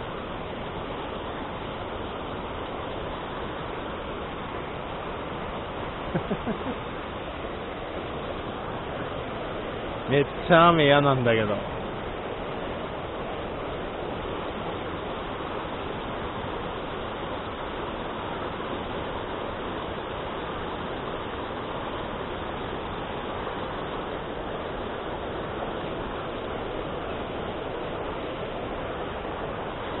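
A fast river rushes and splashes over rocks close by.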